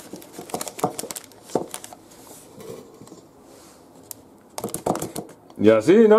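A spatula squelches soft cream into a plastic bag.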